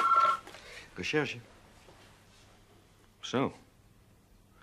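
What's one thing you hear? A man speaks briefly into a telephone.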